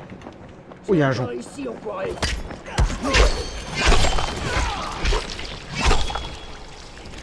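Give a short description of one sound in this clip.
Heavy blows thud and smack in a fight.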